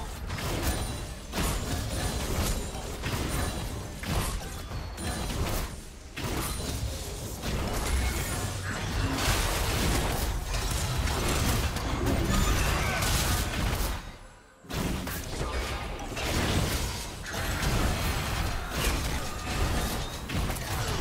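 Magic blasts and zaps crackle in quick bursts.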